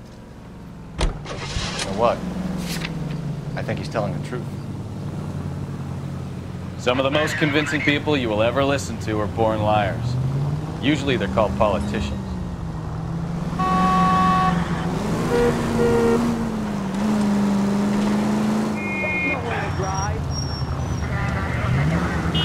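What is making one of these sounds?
A car engine rumbles and revs as the car drives along.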